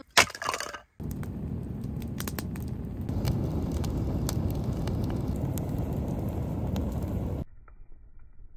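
A campfire roars and crackles.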